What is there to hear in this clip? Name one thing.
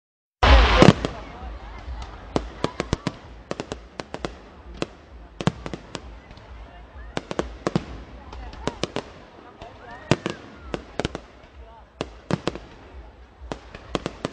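Fireworks bang and crackle in rapid bursts.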